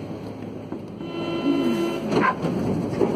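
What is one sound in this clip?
Train brakes squeal with high, wavering tones.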